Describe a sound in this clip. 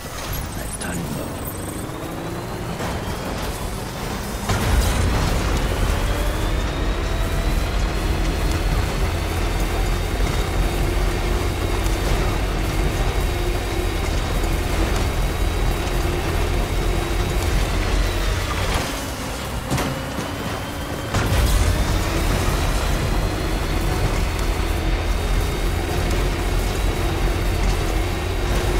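A vehicle engine roars and revs up as it drives over rough ground.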